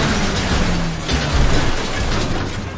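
A truck crashes and tumbles with loud thuds.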